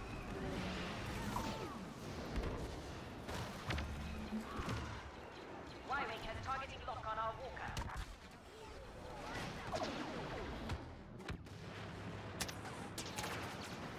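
Explosions boom in a video game battle.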